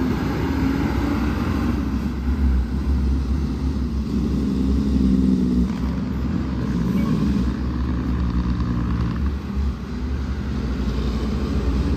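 A heavy truck's diesel engine rumbles as it drives slowly away.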